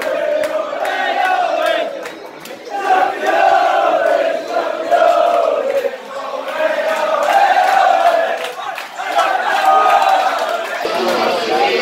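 A crowd sings and chants loudly in an echoing room.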